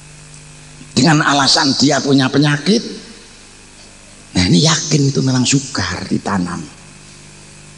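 A middle-aged man speaks forcefully into a microphone, heard through loudspeakers.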